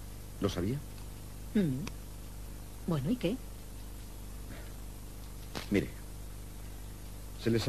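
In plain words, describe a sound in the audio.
A young man speaks in short phrases, close by.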